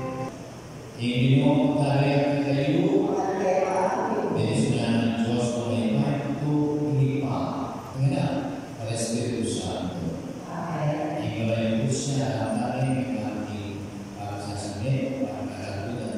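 A mixed choir of men and women sings together in a room with some echo.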